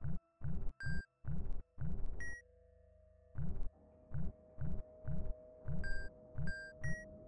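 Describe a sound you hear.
Bright electronic chimes ring out briefly.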